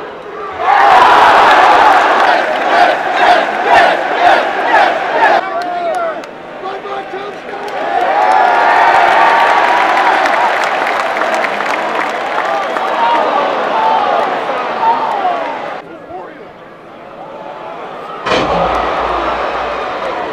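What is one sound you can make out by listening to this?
A huge crowd cheers and roars in a large echoing arena.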